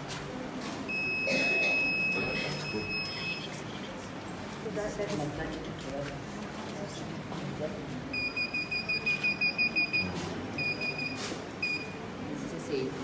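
An electronic buzzer beeps in short, rapid bursts.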